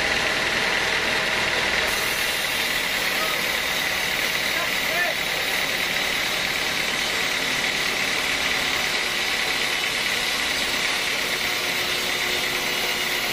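A band saw whines steadily as it cuts through a thick log.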